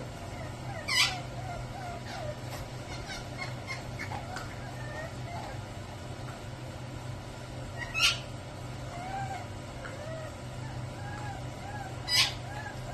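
A puppy whines and yelps in high, short cries.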